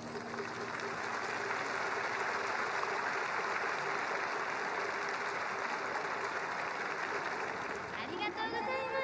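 A large crowd cheers and applauds in a stadium.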